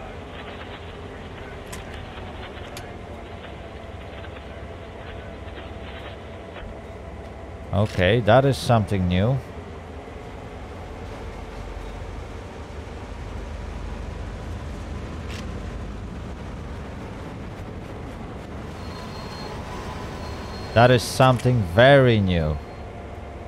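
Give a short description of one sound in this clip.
A diesel locomotive engine rumbles steadily at idle.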